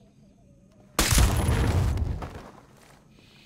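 A rifle fires a loud burst of shots close by.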